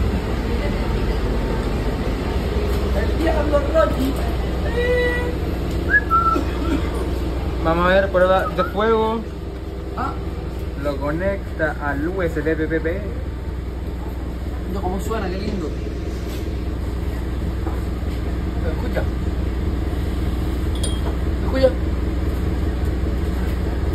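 A bus engine hums low and steady.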